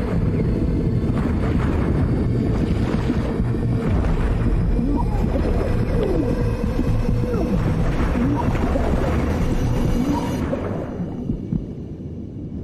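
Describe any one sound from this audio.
Water churns and rumbles deeply underwater, then fades away.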